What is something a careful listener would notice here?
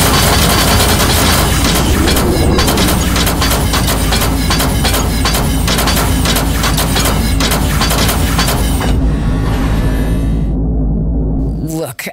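A spaceship engine hums low and steady.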